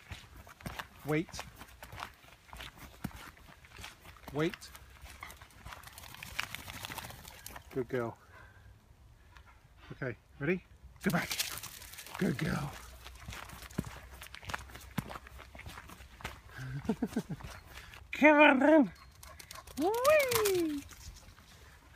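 A dog whines and yelps in short bursts.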